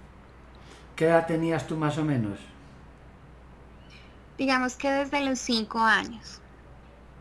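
A young woman speaks briefly in short phrases over an online call.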